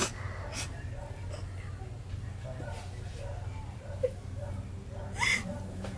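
A young girl laughs softly close by.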